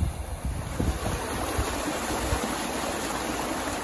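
Water rushes steadily along a narrow channel.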